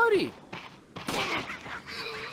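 A gunshot goes off loudly.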